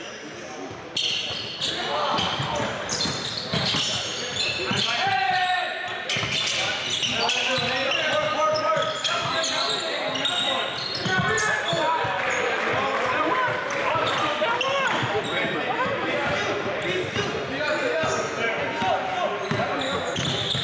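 Young men shout to each other in an echoing gym.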